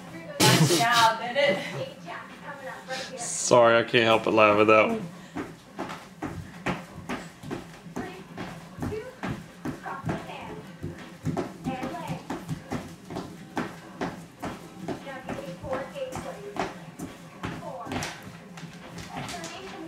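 Upbeat music with a steady beat plays from a television.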